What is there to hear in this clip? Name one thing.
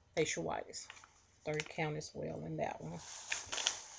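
Plastic crinkles and rustles close by.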